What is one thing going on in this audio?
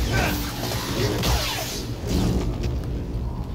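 A lightsaber swings with a loud humming whoosh.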